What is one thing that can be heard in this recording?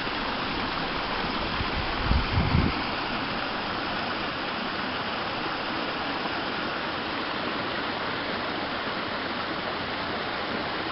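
A small stream splashes and gurgles over rocks nearby.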